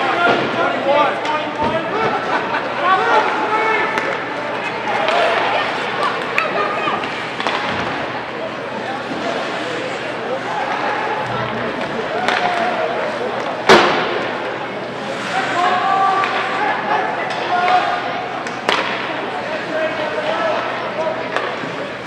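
Spectators chatter in an echoing ice rink.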